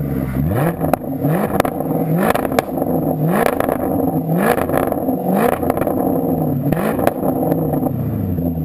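A sports car engine revs hard again and again, its exhaust roaring.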